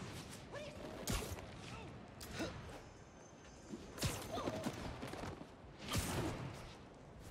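Swinging whooshes and web-shooting thwips sound in quick bursts.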